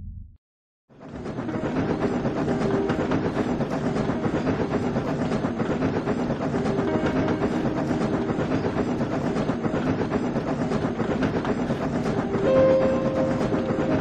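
Train wheels rumble and clatter over rails.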